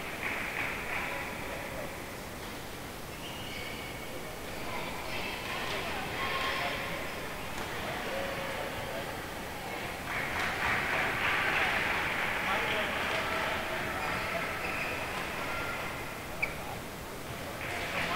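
Rackets hit a shuttlecock with sharp pops.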